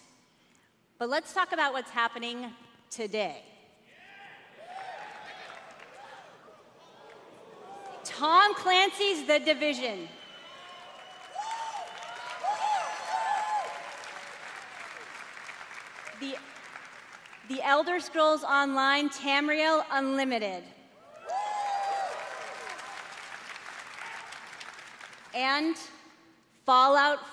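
A woman speaks with animation through a microphone in a large echoing hall.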